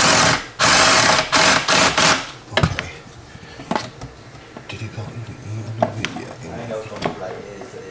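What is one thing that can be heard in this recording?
A power drill whirs in short bursts.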